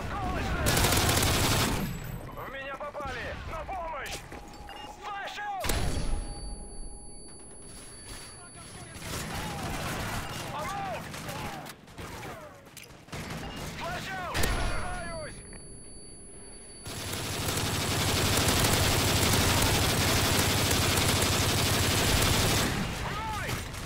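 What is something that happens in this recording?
A rifle fires rapid bursts of gunshots.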